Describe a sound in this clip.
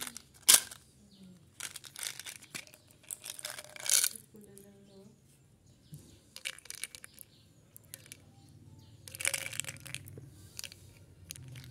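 Small candies rattle inside a plastic bottle.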